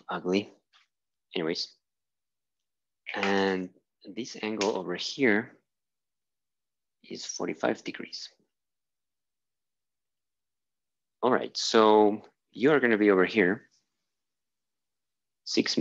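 A young man explains calmly, close by.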